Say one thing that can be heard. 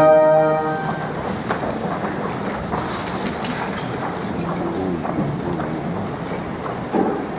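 A crowd murmurs softly in a large hall.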